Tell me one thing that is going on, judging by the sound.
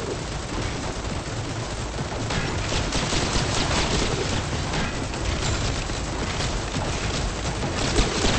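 Gunfire crackles rapidly from a battle game.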